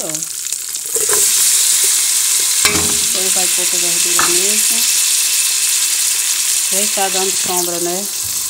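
Chopped vegetables drop into hot oil and sizzle loudly.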